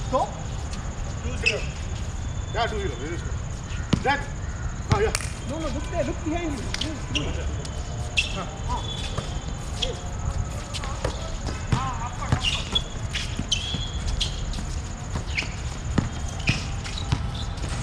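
Young men call out to each other on an outdoor court.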